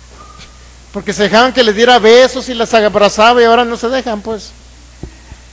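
A man sings through a microphone and loudspeakers in a room with some echo.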